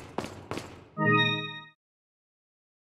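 A bright chime rings out.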